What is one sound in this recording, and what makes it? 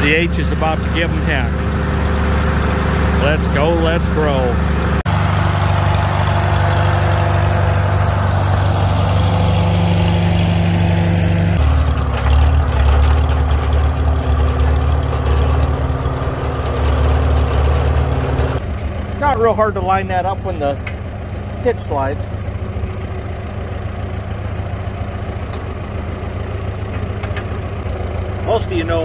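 A tractor engine runs with a steady low chug.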